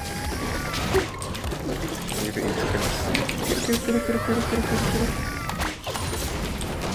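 Video game sound effects of spells and hits ring out.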